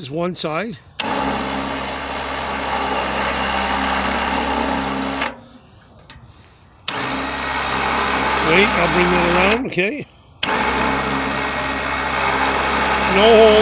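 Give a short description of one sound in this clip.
A machine engine runs with a loud, steady roar.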